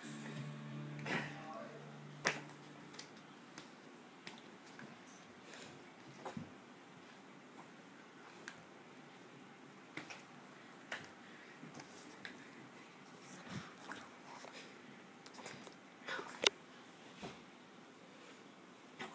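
A small dog scuffles and paws at a toy on the carpet, with soft knocks.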